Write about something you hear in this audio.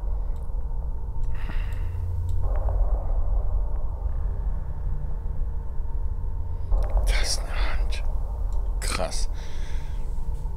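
A woman speaks quietly into a microphone.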